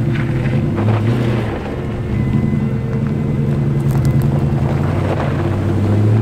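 A four-wheel-drive engine rumbles steadily as it climbs slowly.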